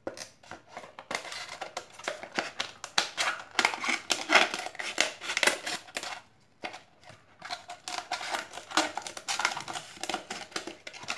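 Paper rustles and crinkles.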